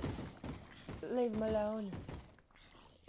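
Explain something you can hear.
A zombie groans.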